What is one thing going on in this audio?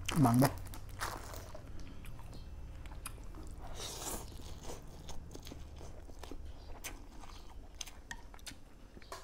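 A man slurps noodles loudly.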